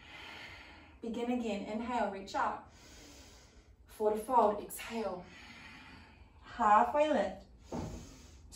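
A young woman speaks calmly, giving instructions.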